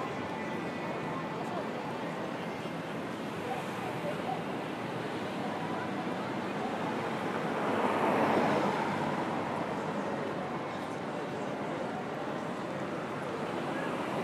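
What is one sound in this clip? Busy city traffic hums steadily outdoors.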